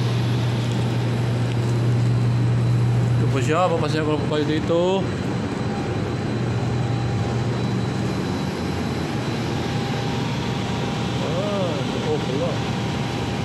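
Machinery hums steadily and low, with a rushing sound of air.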